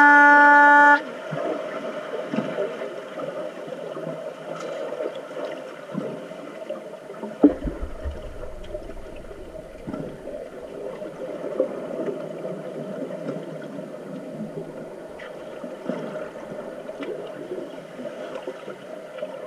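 Air bubbles from scuba divers gurgle and rumble, muffled underwater.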